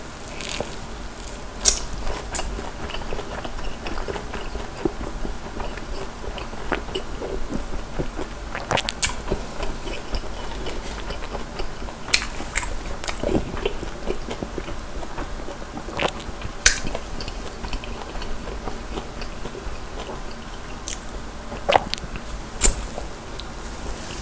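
A young man chews food noisily close to a microphone.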